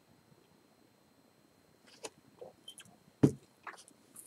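An older man sips a drink and swallows.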